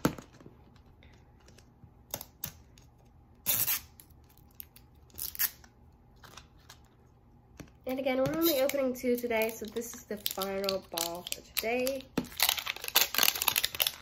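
A plastic wrapper crinkles and rustles as it is peeled open.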